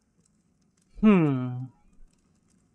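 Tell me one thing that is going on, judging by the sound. A creature lets out a short falling cry.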